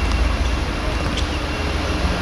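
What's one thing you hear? A ball is kicked on a hard pitch.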